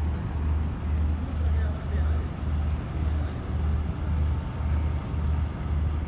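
Water laps gently against a harbour wall.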